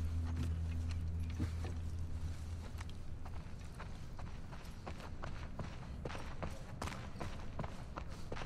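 Footsteps tap steadily.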